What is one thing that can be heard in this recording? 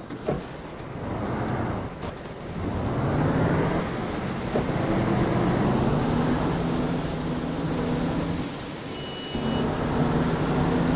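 A bus engine revs up loudly as the bus pulls away and drives on.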